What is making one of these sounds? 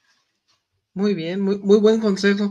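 A man speaks over an online call, with animation.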